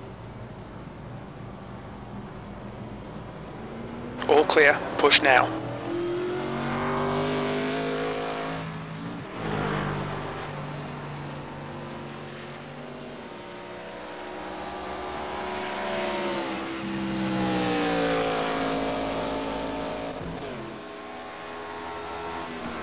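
A race car engine roars, rising and falling in pitch as it speeds past.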